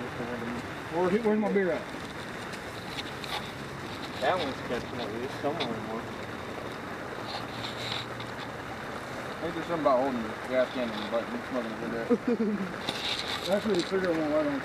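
Young men talk casually nearby outdoors.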